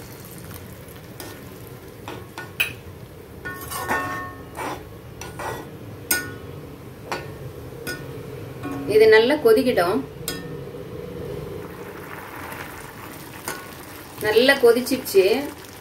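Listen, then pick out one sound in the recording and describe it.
A metal spoon scrapes and knocks against a pan while stirring.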